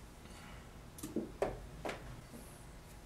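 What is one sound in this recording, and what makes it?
Metal tools clatter against a wooden board.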